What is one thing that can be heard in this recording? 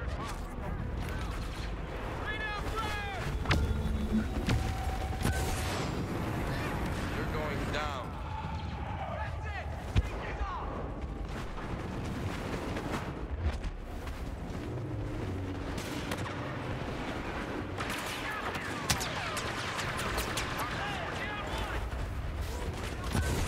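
Footsteps crunch on sand at a run.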